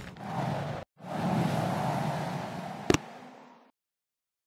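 A game's clouds whoosh past during a scene change.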